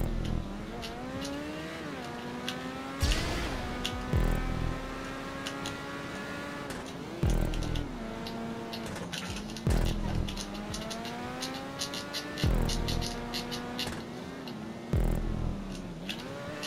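A racing car engine whines, rising in pitch as it speeds up and dropping sharply at each gear change.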